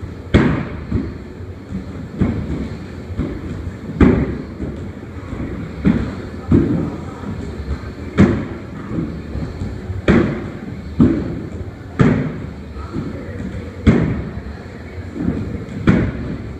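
Feet thud over and over as a man jumps onto a box and lands back on the floor.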